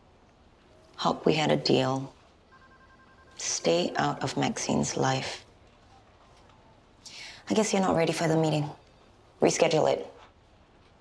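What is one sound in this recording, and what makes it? A woman answers in a calm, firm voice nearby.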